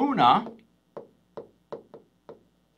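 A pen taps on a hard board surface.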